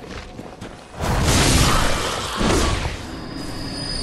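A heavy blade swings and slashes into a creature.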